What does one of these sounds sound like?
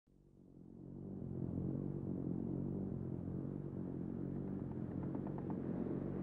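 An airship's engines drone steadily with a low hum as it fades in.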